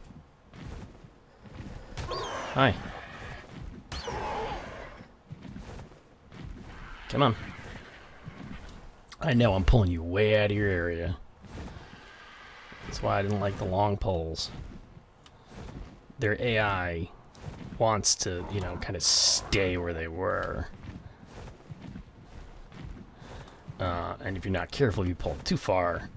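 Large wings flap with heavy whooshes.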